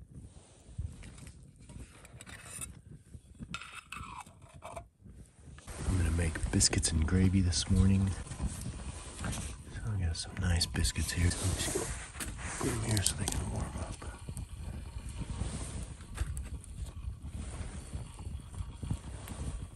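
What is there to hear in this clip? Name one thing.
A wood fire crackles and roars.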